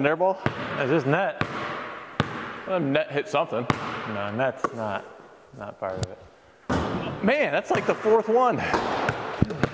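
A man talks with animation in a large echoing hall.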